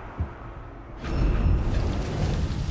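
A magical burst whooshes and booms.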